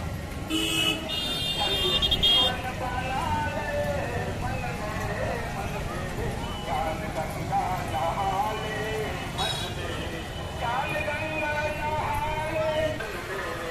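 Motorcycle engines hum as they pass by.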